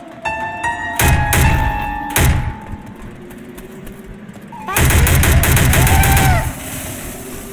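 A rifle fires in loud rapid bursts.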